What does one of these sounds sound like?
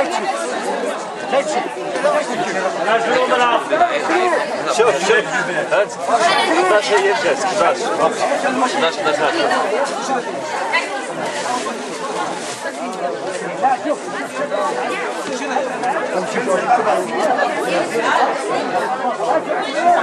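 A crowd of men and women chatters loudly all around, close by.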